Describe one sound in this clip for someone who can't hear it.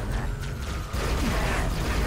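A plasma gun fires in rapid bursts.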